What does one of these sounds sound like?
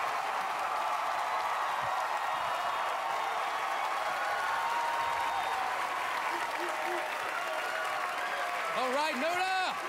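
A large studio audience cheers and applauds loudly.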